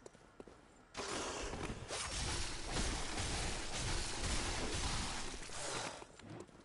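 A beast snarls and growls.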